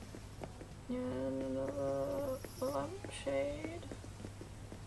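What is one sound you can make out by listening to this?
A young woman speaks briefly and calmly into a microphone.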